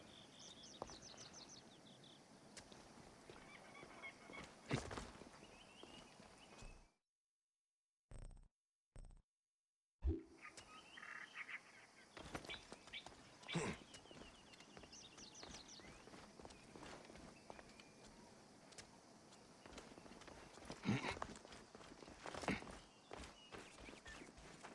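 Footsteps crunch on rock.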